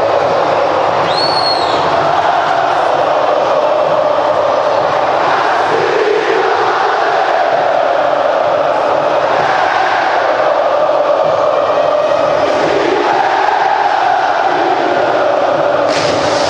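A huge stadium crowd sings and chants loudly in unison, echoing around the stands.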